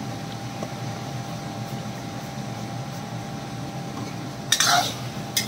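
Meat sizzles softly in hot oil.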